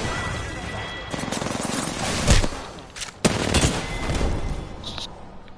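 Rapid gunshots crack and rattle.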